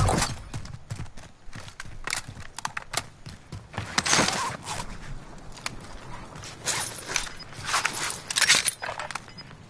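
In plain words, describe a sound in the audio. Footsteps patter quickly on stone paving.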